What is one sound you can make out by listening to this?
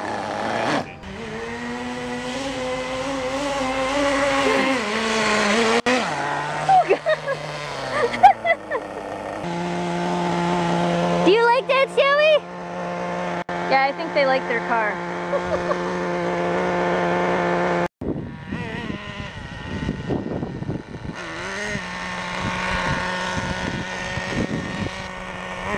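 A nitro radio-controlled buggy engine whines and revs.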